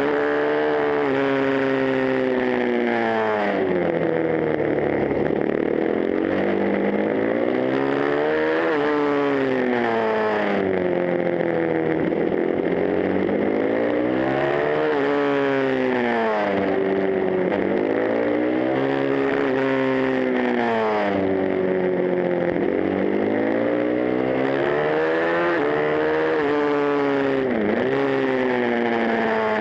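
A motorcycle engine roars close by, revving up and down through the gears.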